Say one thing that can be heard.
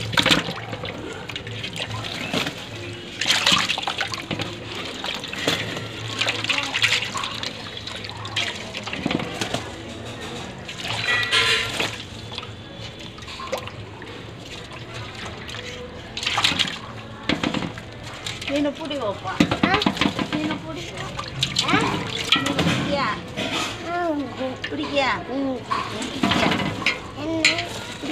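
Water sloshes and splashes as hands stir fish in a metal bowl.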